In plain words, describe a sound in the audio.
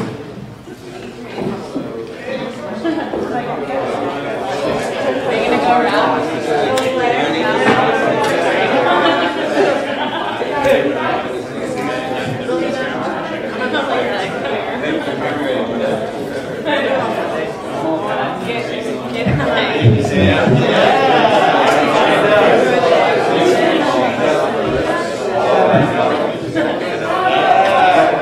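A crowd of men and women chatter all at once in an echoing room.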